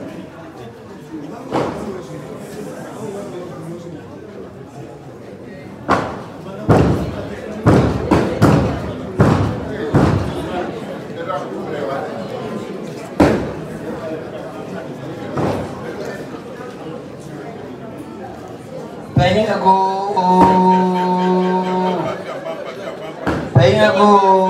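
A crowd of people murmurs and chatters in a room nearby.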